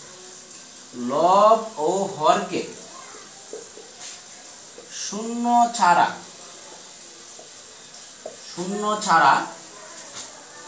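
A man speaks calmly and slowly, close by, in short phrases.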